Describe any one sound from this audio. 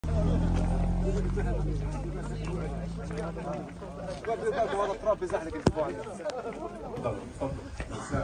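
Several men talk over one another nearby.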